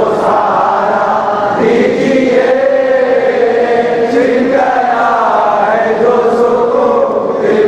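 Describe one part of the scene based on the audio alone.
A man chants a slow, melodic prayer through a loudspeaker in a large echoing hall.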